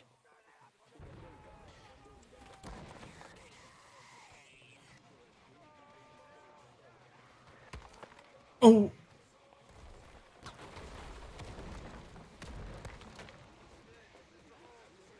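Musket shots crack amid a battle.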